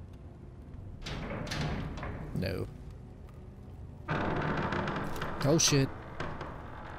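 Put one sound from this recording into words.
A heavy iron gate rattles and creaks open.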